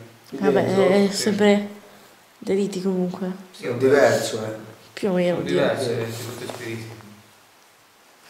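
A young man speaks close by, calmly and clearly.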